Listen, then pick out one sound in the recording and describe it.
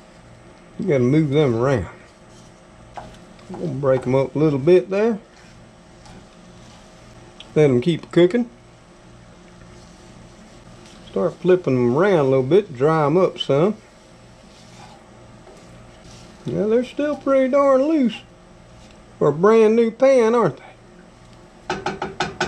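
A wooden spatula scrapes and stirs eggs in a pan.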